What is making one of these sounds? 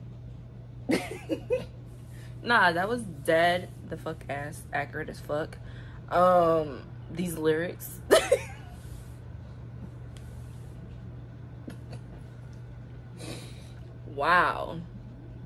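A young woman talks casually and close by, with pauses.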